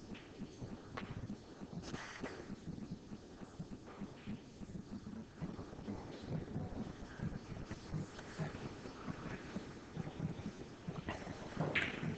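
A cue strikes a pool ball with a sharp clack.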